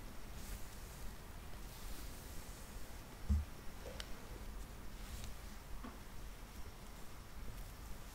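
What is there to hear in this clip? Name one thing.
A hand softly strokes a cat's fur.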